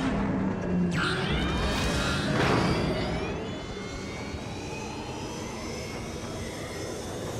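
Blaster shots zap and whine in quick bursts.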